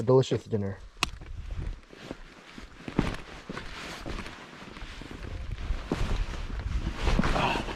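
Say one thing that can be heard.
Rocks scrape and knock underfoot.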